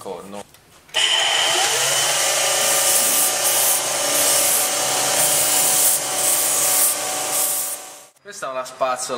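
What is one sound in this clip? A belt sander grinds metal with a loud, steady whirring hiss.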